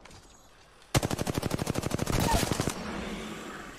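Gunfire bursts loudly and rapidly.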